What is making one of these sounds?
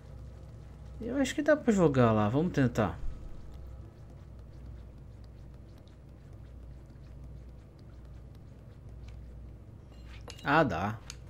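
A young man speaks with animation through a headset microphone, close by.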